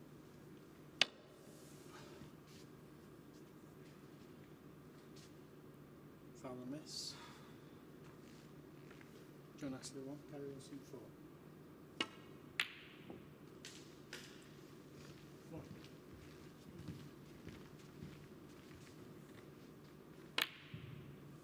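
Snooker balls click sharply as a cue strikes them.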